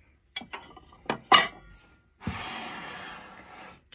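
Ceramic plates clink together as a hand lifts them from a stack.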